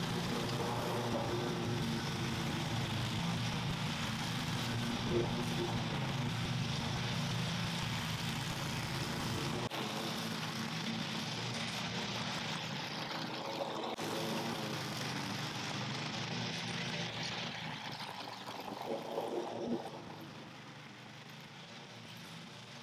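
A lawn mower engine drones steadily, sometimes close and sometimes farther off.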